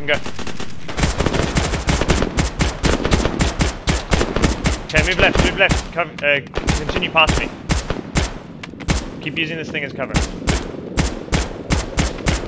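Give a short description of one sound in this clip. Rapid gunfire bursts out loudly, shot after shot.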